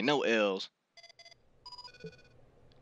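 Short electronic menu beeps chime in quick succession.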